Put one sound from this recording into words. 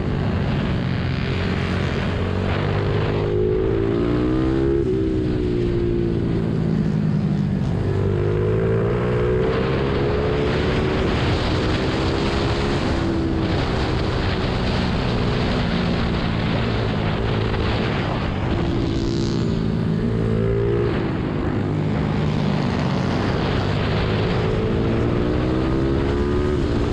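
A motorcycle engine roars close by, revving up and down through the gears.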